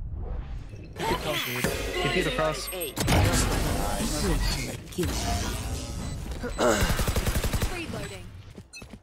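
A young man shouts excitedly.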